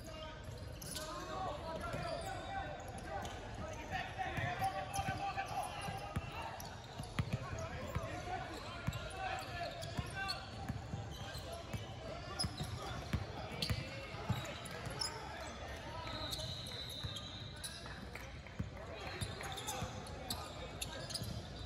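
Players and onlookers chatter and shout in a large echoing gym.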